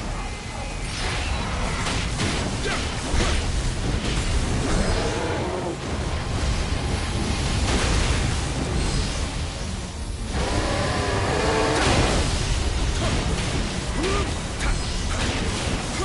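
Blades clash and strike in quick blows.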